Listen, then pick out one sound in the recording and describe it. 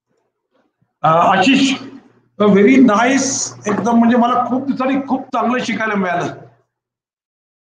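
An elderly man speaks over an online call.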